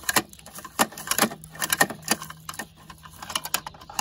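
A plastic lid clacks and snaps shut.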